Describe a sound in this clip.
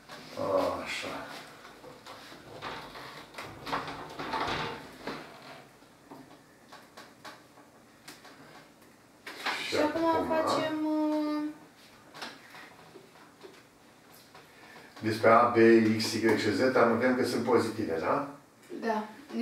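An elderly man speaks calmly nearby, with pauses.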